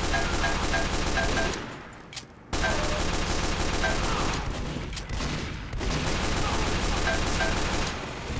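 Pistol shots fire rapidly.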